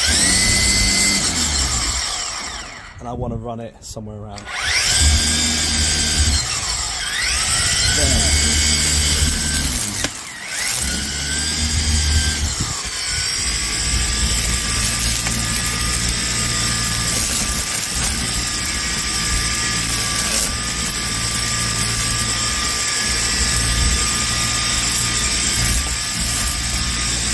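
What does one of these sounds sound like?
A string trimmer motor whines loudly, dropping briefly and revving back up several times.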